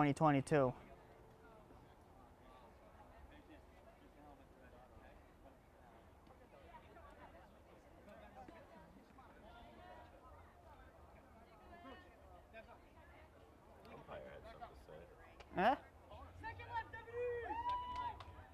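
A crowd of spectators chatters quietly outdoors.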